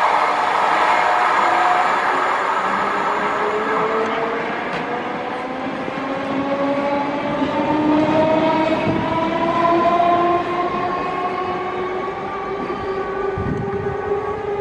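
An electric train's motor whines and rises in pitch as the train pulls away.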